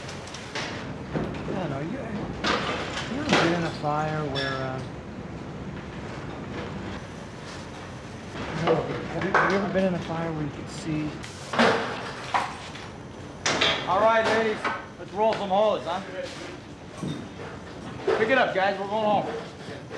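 A man speaks in a low, serious voice, close by.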